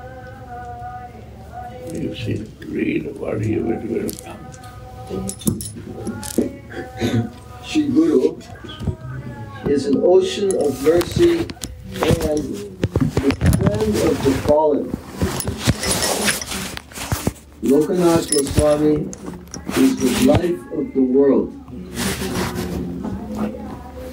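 An elderly man speaks slowly and calmly, close by.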